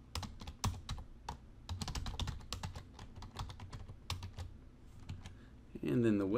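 Keys clack quickly on a keyboard.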